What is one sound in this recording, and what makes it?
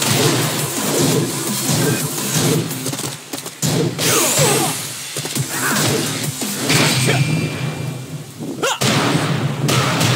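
Punches and kicks land with sharp, heavy thuds.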